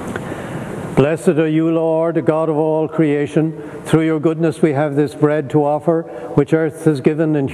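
An elderly man chants in a clear, steady singing voice, heard close through a microphone.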